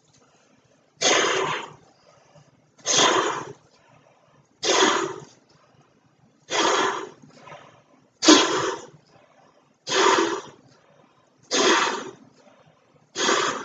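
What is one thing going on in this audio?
A man blows hard into a large balloon in repeated bursts of breath, close by.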